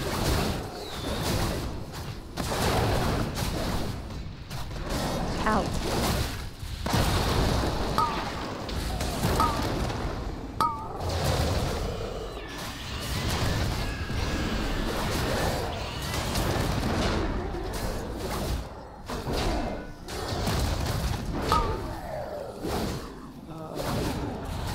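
Spell effects whoosh, crackle and boom in a busy fight.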